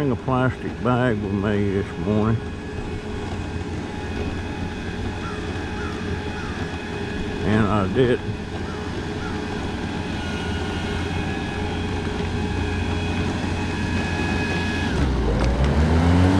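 An electric mobility scooter motor hums steadily while rolling along.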